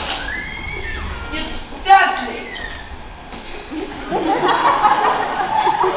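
Young performers call out and sing loudly on a stage in a large echoing hall.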